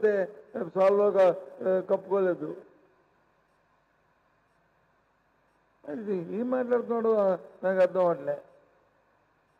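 A middle-aged man speaks firmly into a microphone, in short bursts with pauses.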